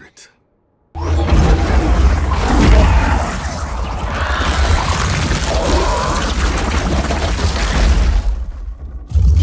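Swirling magic whooshes loudly and roars.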